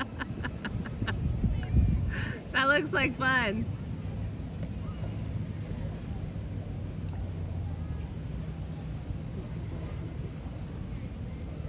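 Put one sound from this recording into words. A paddle dips and splashes in the water.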